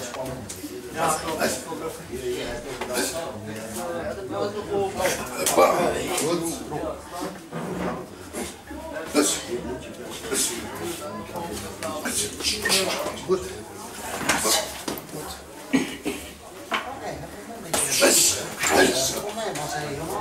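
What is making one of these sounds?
Gloved punches thud against hands and bodies.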